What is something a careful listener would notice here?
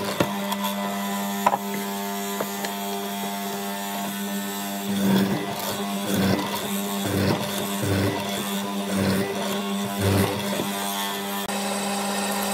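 A mortising machine motor hums steadily.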